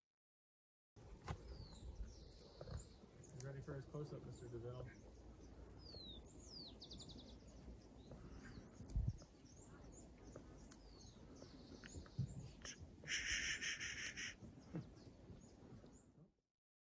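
A llama chews noisily up close.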